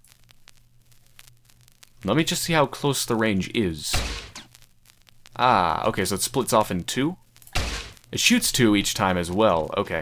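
A nail gun fires in quick bursts.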